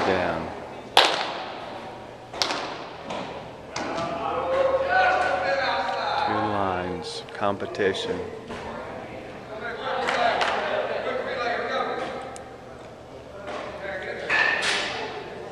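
Baseballs smack into leather gloves in a large echoing hall.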